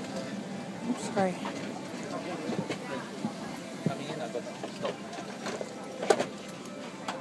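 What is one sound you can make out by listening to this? Many adult passengers chatter all around at close range.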